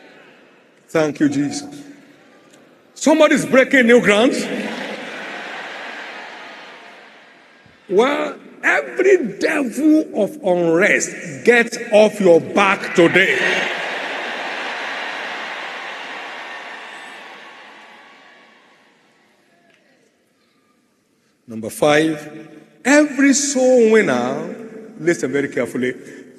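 A middle-aged man preaches forcefully through loudspeakers, his voice echoing through a large hall.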